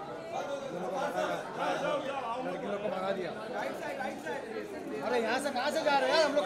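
Several voices chatter and call out nearby in a busy, noisy crowd.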